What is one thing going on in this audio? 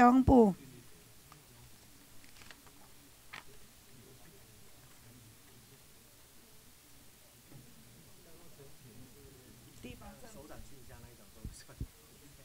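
A man speaks quietly and calmly into a microphone in a large room.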